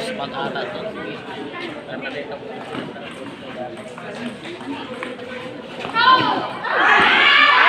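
A crowd of children chatter and call out nearby.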